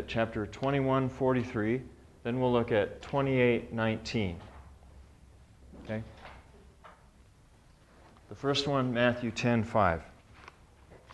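A middle-aged man speaks calmly and clearly nearby, with long pauses.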